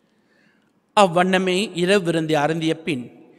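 A man intones prayer in a steady voice through a microphone.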